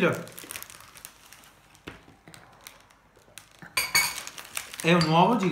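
Aluminium foil crinkles and rustles.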